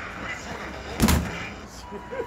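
A fist thumps hard against a punching pad.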